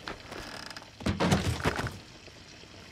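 A body thumps and rustles into a wooden box.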